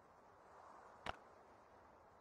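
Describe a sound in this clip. A short interface click sounds.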